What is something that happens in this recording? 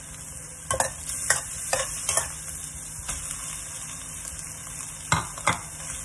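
Rice pours into a pan with a soft rustle.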